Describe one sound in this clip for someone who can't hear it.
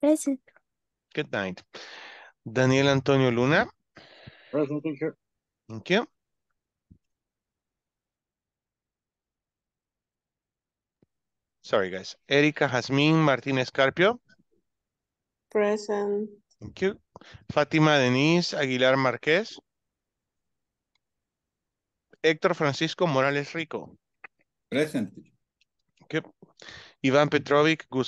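A young man talks with animation over an online call.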